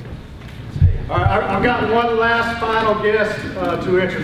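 A man speaks loudly to a room.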